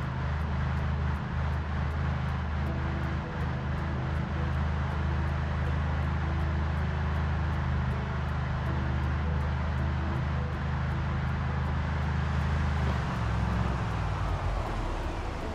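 A truck engine rumbles steadily, then slows and stops.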